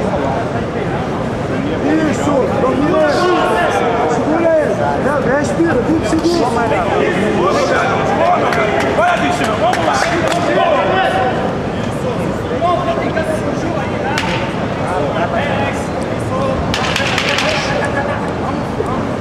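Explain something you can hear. A large crowd shouts and cheers loudly throughout.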